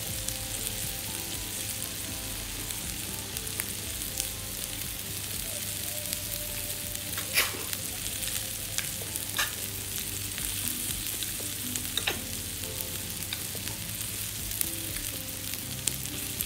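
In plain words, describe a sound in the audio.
Water simmers and bubbles gently in a pot.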